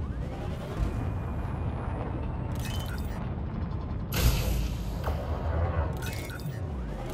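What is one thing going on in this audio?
A spaceship engine rumbles low and steady.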